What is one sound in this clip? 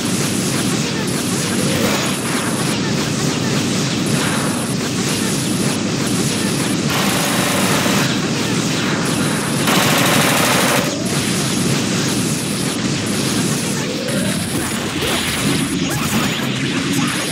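Rapid punches and energy blasts hit again and again in a fighting game.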